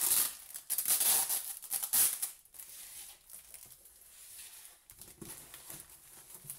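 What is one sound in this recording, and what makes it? Plastic wrapping crinkles and rustles in someone's hands.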